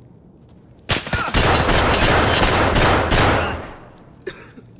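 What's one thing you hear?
A gun fires a rapid, loud automatic burst.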